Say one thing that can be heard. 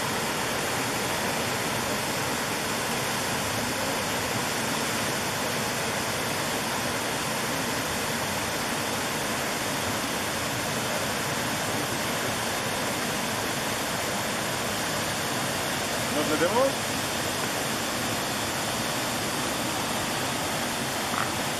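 A shallow stream flows over rocks outdoors.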